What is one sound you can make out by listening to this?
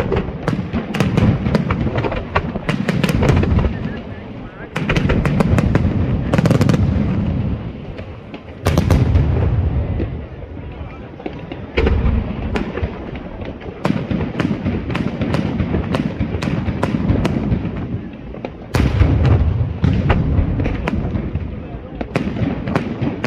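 Fireworks burst with loud bangs and cracks.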